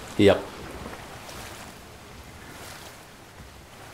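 Water splashes as a figure dives into a pool.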